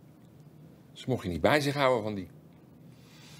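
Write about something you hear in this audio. A middle-aged man speaks briefly and firmly up close.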